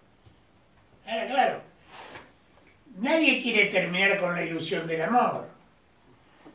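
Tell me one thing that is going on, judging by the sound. An elderly man speaks calmly and deliberately into a microphone.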